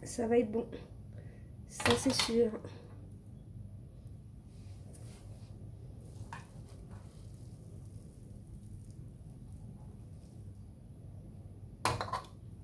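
Tongs scrape and clatter against a wok.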